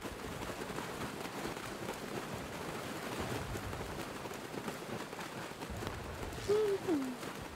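Water splashes as someone wades through a shallow river.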